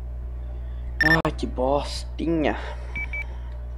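A young man speaks briefly with animation close to a microphone.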